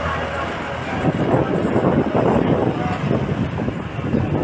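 Motorbikes buzz along a busy street.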